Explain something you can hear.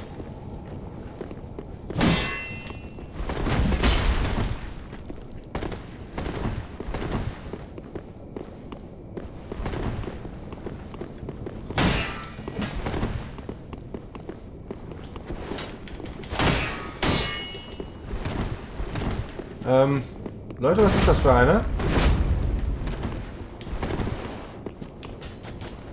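Armoured footsteps thud on stone.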